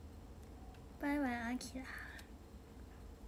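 A young woman speaks briefly and brightly, close by.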